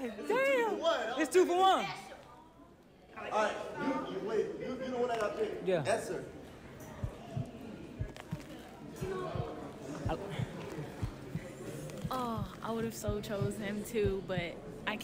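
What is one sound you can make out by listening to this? A group of young people talk and laugh together.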